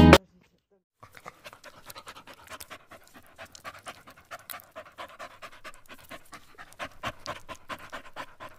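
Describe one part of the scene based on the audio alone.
A small dog pants rapidly nearby.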